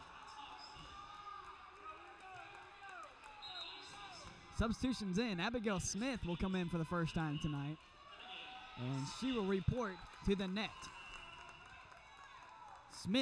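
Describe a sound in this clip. A volleyball is struck with sharp thuds in an echoing hall.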